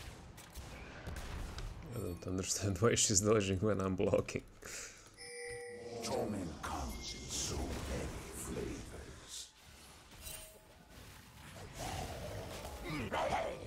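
Magic blasts and sword strikes crackle and clash in a fantasy battle.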